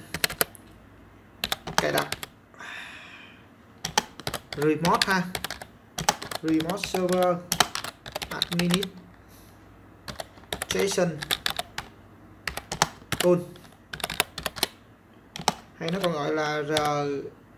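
Keys on a keyboard click in quick bursts.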